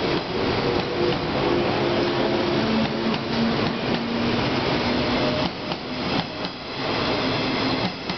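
An electric multiple-unit train pulls away, its traction motors whining.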